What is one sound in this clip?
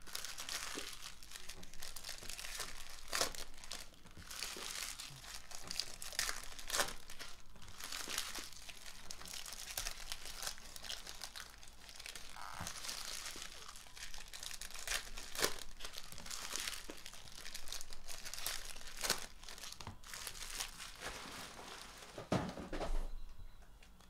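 Foil packs crinkle and rustle as they are torn open.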